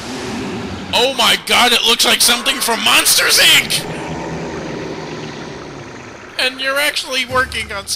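A monster lets out loud, shrieking roars.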